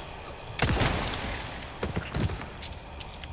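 A handgun fires several sharp shots with a short ringing echo.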